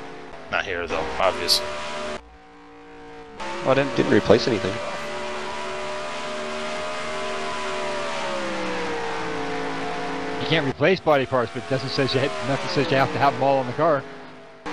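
A V8 stock car engine roars at full throttle.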